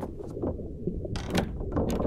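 A door handle clicks as a door is opened.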